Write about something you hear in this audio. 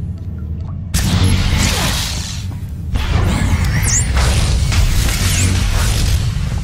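Laser blasts and energy crackles burst in a loud fight.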